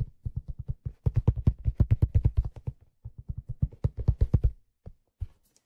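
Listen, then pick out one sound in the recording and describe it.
Fingers tap rapidly on a hollow rubbery object close to a microphone.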